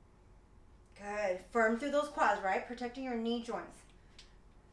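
A young woman speaks briefly and calmly.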